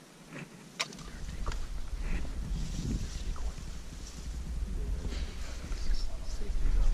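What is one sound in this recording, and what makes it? Dry leaves rustle and crackle close by.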